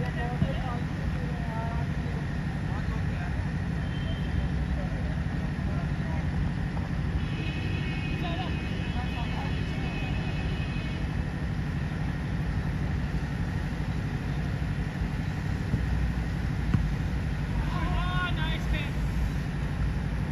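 Young men shout to each other at a distance outdoors.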